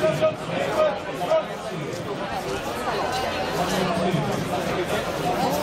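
A large crowd of marching people chatters and calls out nearby, outdoors.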